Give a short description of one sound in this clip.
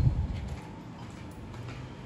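Sandaled footsteps tap on a hard floor.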